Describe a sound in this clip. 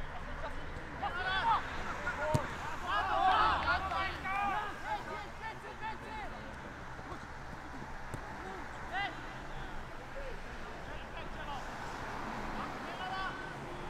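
Men shout to each other across an open field.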